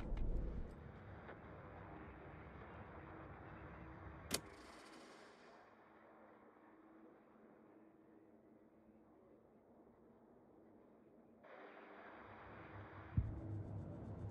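Music plays softly from a cassette player, muffled and tinny.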